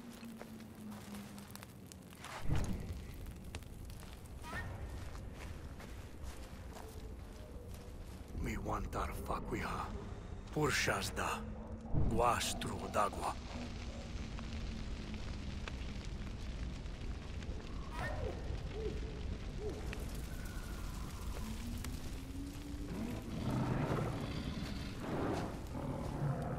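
A torch flame crackles and roars steadily.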